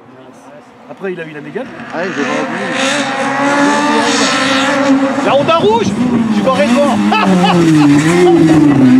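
A second rally car engine revs and roars as it approaches and passes.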